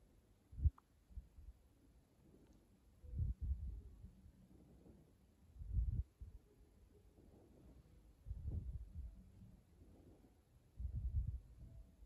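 A small bird chirps softly now and then.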